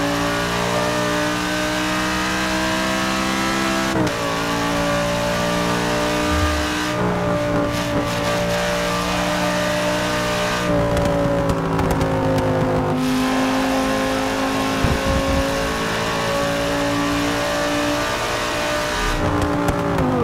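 A racing car engine roars at high revs, shifting up through the gears.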